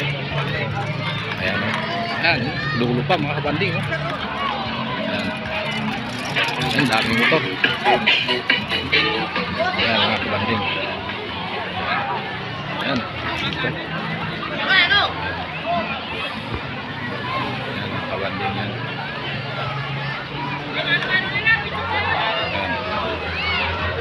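A crowd of men and women chatter and call out nearby outdoors.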